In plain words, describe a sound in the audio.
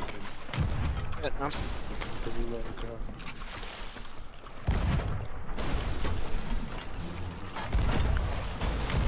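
Waves wash against a wooden ship's hull.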